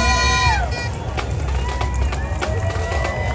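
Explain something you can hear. Drums beat in a marching rhythm.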